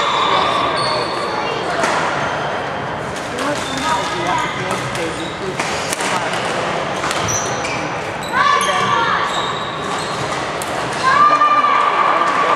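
Young people chatter and call out in the background of a large echoing hall.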